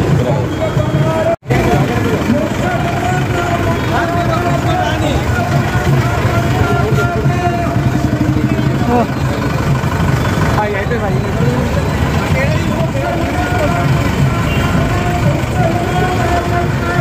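A group of men sing devotional hymns together nearby.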